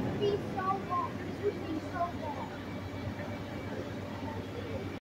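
A carousel rumbles steadily as it turns.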